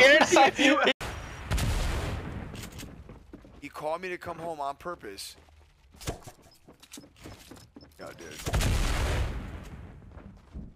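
A gunshot booms with a loud blast.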